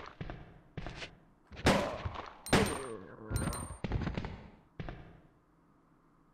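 Loud gunshots ring out in a series, each fading with a short echo.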